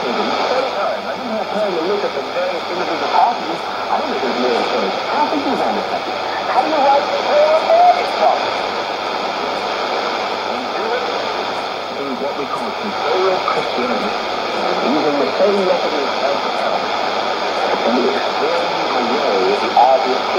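Static hisses steadily from a radio.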